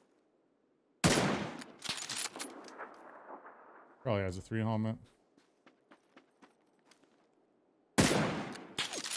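A scoped rifle fires in a video game.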